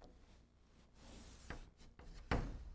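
An eraser wipes across a blackboard.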